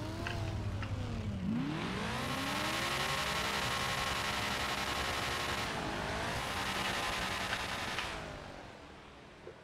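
Car engines rev loudly and roar as they race away.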